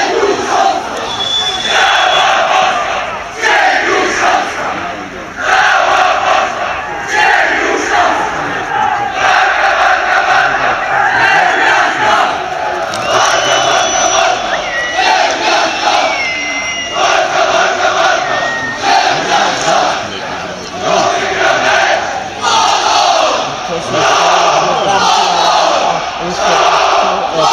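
A large crowd of fans chants loudly and rhythmically in an open stadium.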